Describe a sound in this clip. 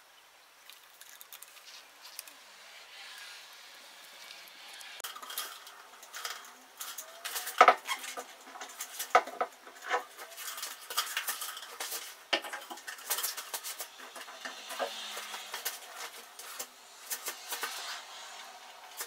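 Plastic cups knock and rattle as they are handled.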